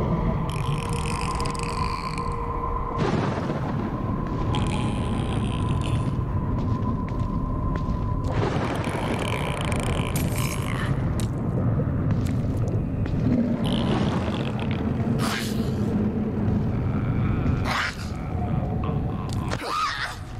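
Rain falls steadily on wet ground outdoors.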